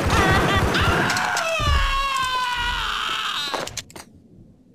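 A man groans in pain.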